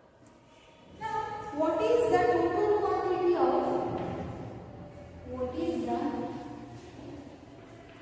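A young woman speaks clearly and calmly nearby.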